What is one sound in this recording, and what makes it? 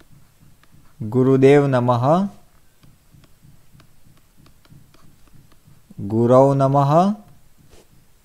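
A man chants loudly and slowly into a nearby microphone.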